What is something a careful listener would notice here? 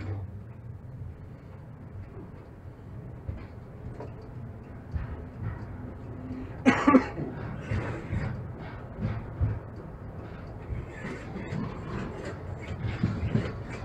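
A tram rumbles along rails with low steady noise.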